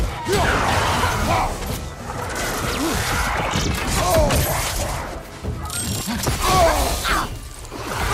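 A man grunts and shouts while fighting.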